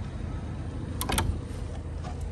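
A gloved hand knocks on a wooden fence.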